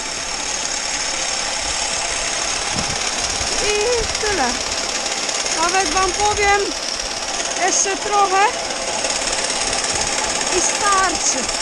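Grain pours steadily in a hissing stream, outdoors.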